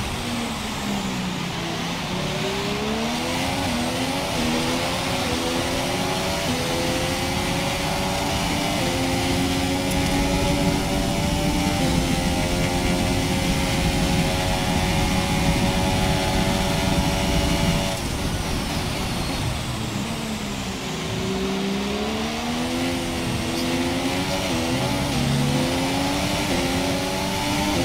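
A racing car engine roars, climbing in pitch and dropping back with each gear change.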